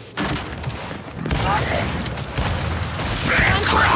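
Video game gunfire bursts out.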